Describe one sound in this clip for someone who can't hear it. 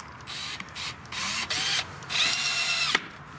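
A cordless drill whirs in short bursts, driving a screw into wood.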